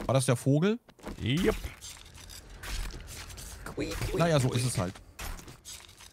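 A knife cuts and squelches through flesh.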